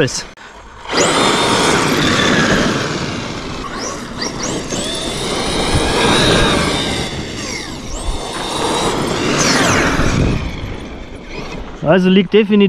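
A small electric motor whines loudly, rising and falling in pitch as a toy car speeds about.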